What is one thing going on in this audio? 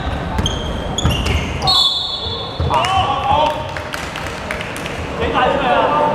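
A basketball thumps as it bounces on the floor.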